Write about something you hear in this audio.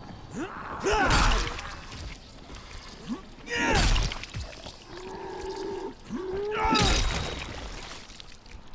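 A heavy blunt weapon thuds into flesh.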